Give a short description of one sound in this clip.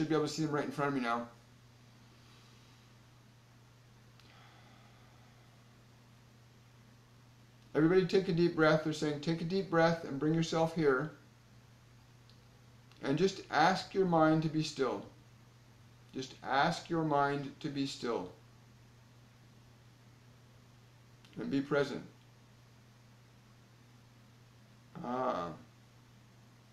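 A middle-aged man speaks calmly and closely into a microphone, with pauses.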